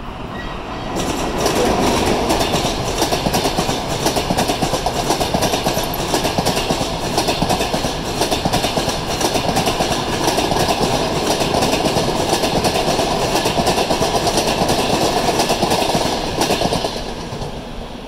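A passenger train rolls past, its wheels clattering rhythmically over the rail joints.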